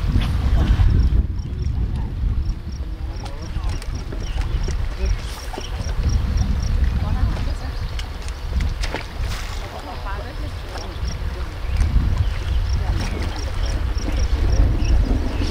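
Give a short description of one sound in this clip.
A fishing reel clicks as a line is wound in.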